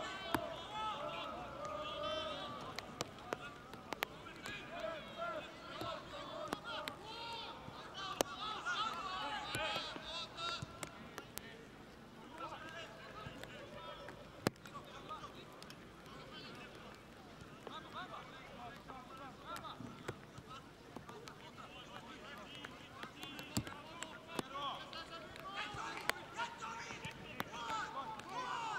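A crowd of spectators chatters and calls out in the open air.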